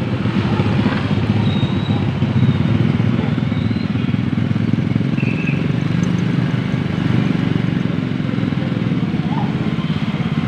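A tricycle engine rumbles past.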